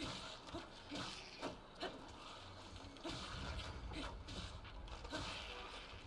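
Explosions bang in a video game.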